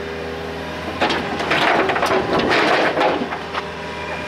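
Rocks rumble and thud as an excavator dumps them into a truck bed.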